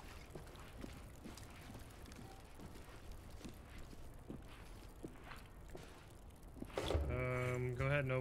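Footsteps crunch over loose debris.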